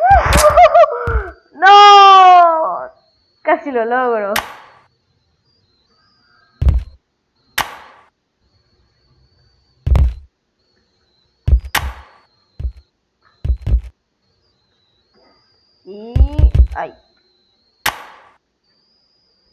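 A pogo stick thuds as it lands again and again.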